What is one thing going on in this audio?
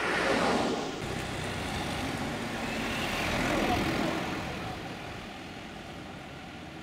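A vehicle drives past close by with a rumbling engine.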